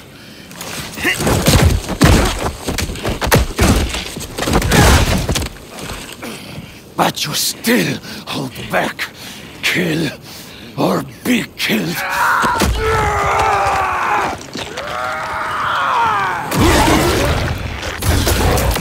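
A man grunts and strains.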